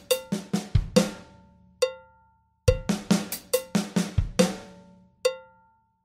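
Drums and cymbals are struck in a quick pattern, ringing out between hits.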